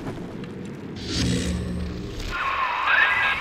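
Electricity crackles and buzzes sharply.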